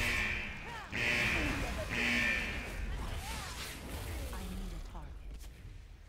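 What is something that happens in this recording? Magic spells whoosh and shimmer in bursts.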